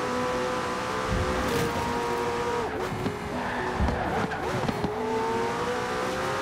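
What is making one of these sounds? A sports car engine roars at high speed, dropping in pitch as it slows for a bend and rising again as it speeds up.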